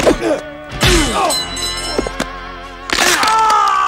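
Men grunt and scuffle in a fight.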